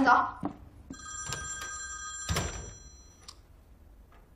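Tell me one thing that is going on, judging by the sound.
A phone rings with a steady electronic tone.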